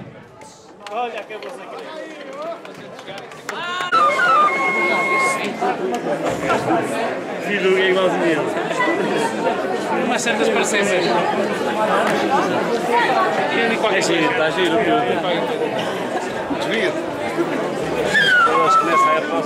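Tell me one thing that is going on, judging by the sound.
A crowd of men and women chatters loudly outdoors.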